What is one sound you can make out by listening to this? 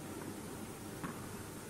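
A tennis ball bounces on a hard court.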